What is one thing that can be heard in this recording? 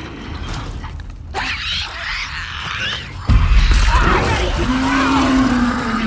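Footsteps scuff on a gritty floor.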